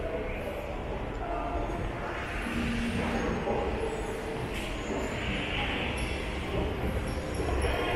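An escalator hums and rumbles steadily.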